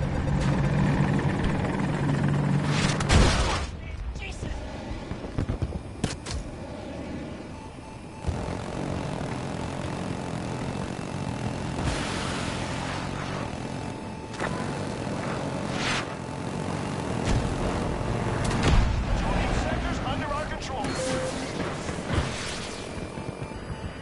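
Gunfire and explosions boom in bursts.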